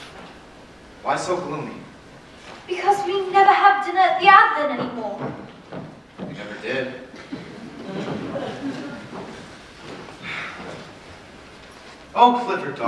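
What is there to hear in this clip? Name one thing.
A man speaks lines with expression, heard from afar in a large hall.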